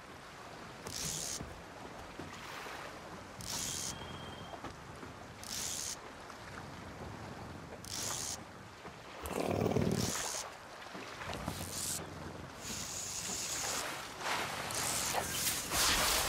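A fishing reel whirs in short bursts.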